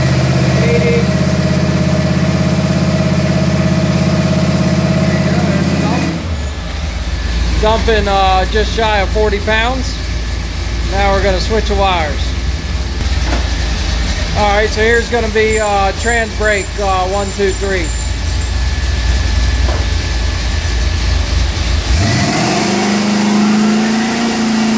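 A machine hums loudly and steadily.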